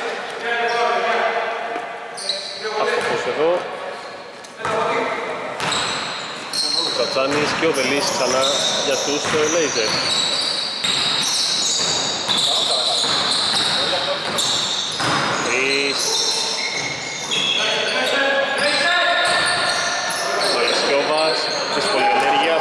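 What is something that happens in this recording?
A basketball bounces on a wooden floor in an echoing hall.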